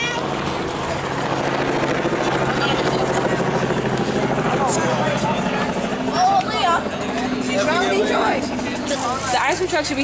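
Young men and women chat nearby outdoors.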